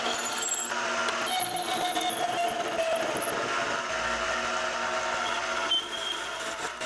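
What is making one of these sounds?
A metal lathe hums steadily as its chuck spins.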